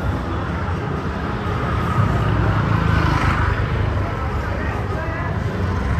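Motor scooters ride past close by with a buzzing engine.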